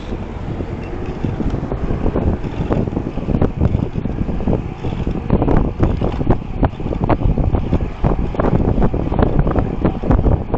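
Wind rushes loudly past a microphone on a moving bicycle.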